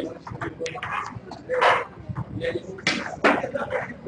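Snooker balls knock together and roll across the table.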